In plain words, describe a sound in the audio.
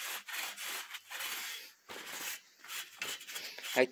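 A cloth rubs and wipes against metal.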